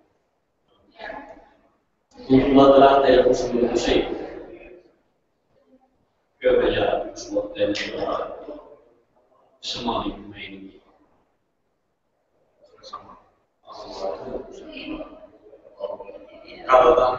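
A man speaks calmly in a large echoing room.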